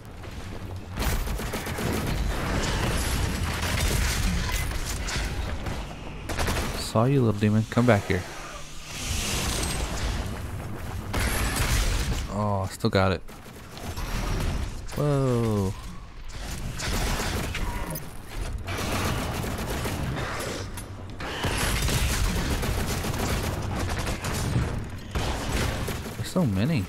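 Heavy guns fire in rapid, loud blasts.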